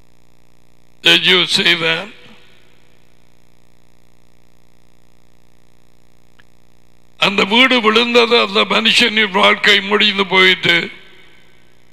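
A middle-aged man speaks calmly into a headset microphone.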